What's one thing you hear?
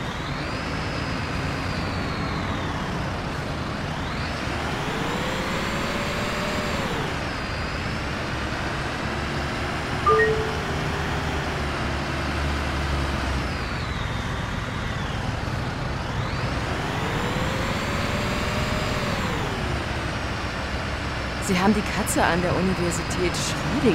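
A bus engine hums and revs up and down repeatedly.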